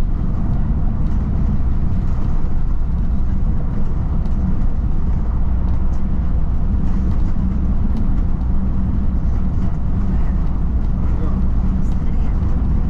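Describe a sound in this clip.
A vehicle's engine hums steadily as it drives along a road.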